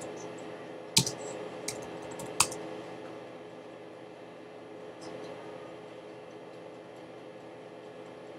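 A computer mouse clicks a few times.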